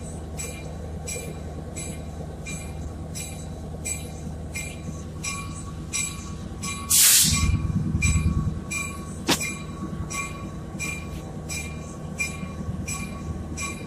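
Train wheels click rhythmically over rail joints.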